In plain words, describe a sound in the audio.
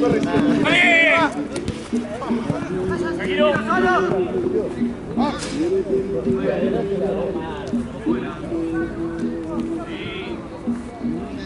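Young men shout to each other across an open outdoor field.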